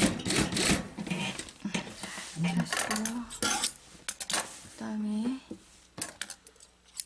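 Cloth rustles and crinkles as hands smooth and handle it.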